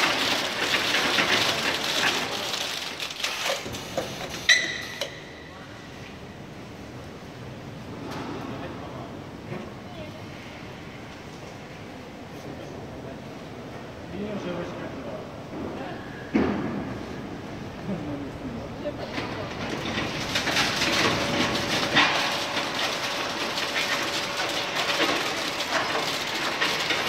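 A large machine whirs and rattles nearby, loud at first, quieter in the middle, then loud again.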